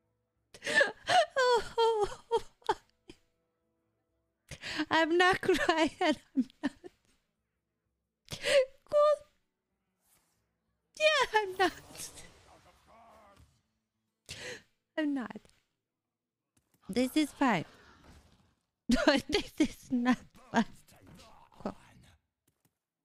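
A young woman talks casually into a close microphone, in bursts with pauses.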